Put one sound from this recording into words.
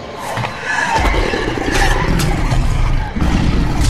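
A large wolf roars loudly.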